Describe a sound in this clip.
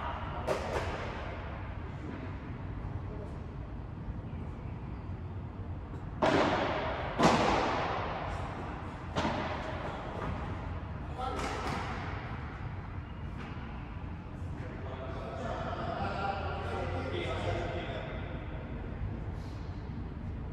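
Padel rackets strike a ball with sharp pops that echo through a large hall.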